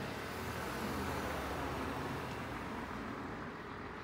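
A car drives past on a road.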